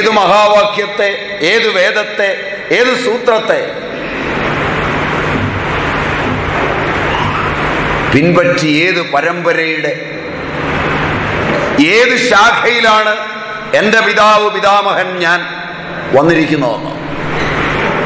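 A man speaks calmly and close by, in short bursts with pauses.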